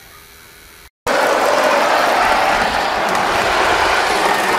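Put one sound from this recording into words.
A model steam locomotive rolls along metal rails with a rushing clatter.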